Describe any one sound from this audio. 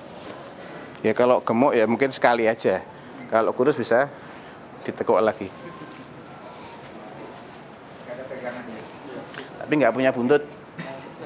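A middle-aged man speaks calmly into a clip-on microphone, in short bursts with pauses.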